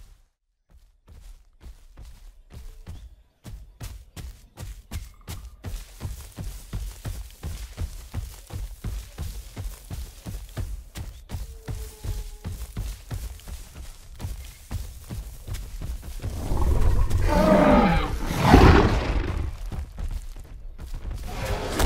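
Heavy footsteps thud rapidly as a large creature runs over the ground.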